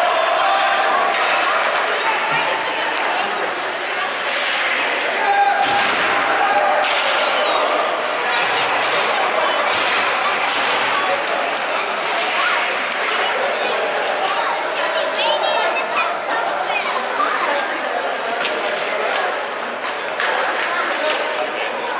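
Skates scrape and swish across ice.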